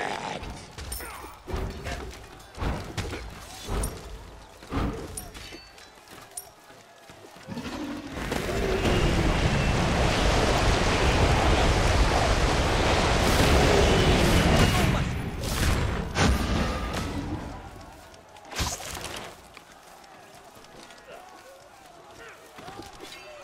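Sharp hits and magic blasts crack out in quick bursts.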